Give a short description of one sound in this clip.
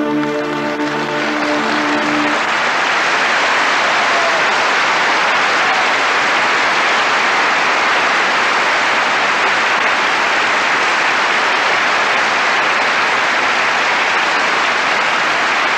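A large audience applauds loudly and steadily in a big hall.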